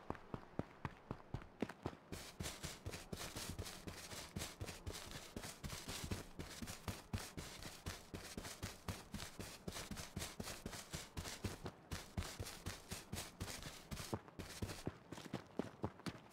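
Footsteps thud quickly and steadily on grass.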